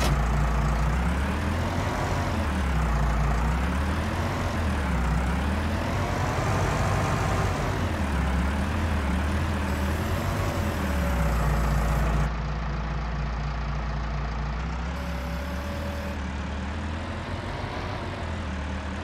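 A tractor engine rumbles steadily, rising and falling in pitch as it revs.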